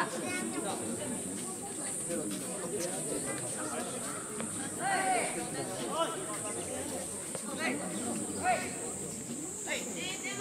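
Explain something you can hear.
Tennis rackets strike a ball back and forth.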